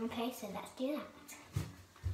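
A young girl speaks playfully close by.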